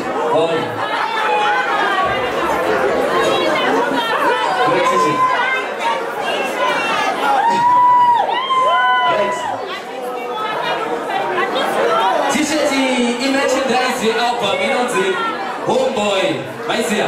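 A young man raps loudly into a microphone through loudspeakers.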